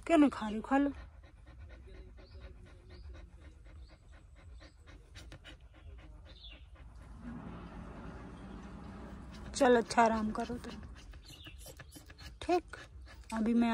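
A dog pants quickly and steadily.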